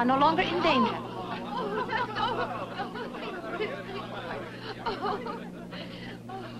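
Several people chatter and laugh nearby.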